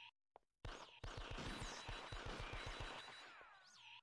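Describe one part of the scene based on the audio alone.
Rapid arcade gunfire sound effects rattle in a video game.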